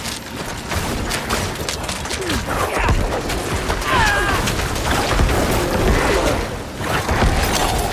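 Game combat sounds of blows, slashes and explosions clash rapidly.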